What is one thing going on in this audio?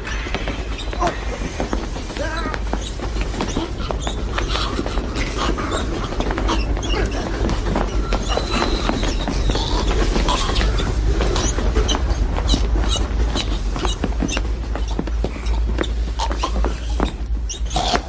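A man gasps and groans in pain.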